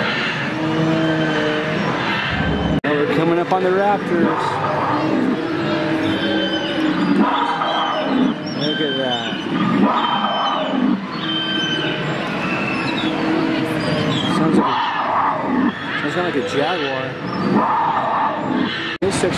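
An animatronic dinosaur growls and roars through a loudspeaker.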